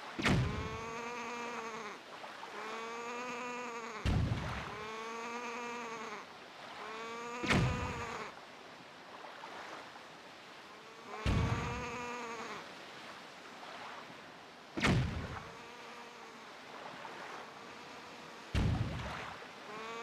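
A small boat splashes over the waves.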